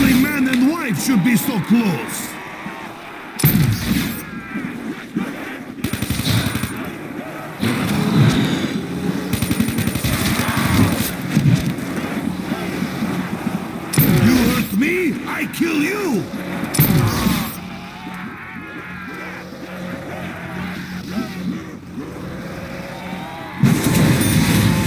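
Energy weapons fire with loud bursts and zaps.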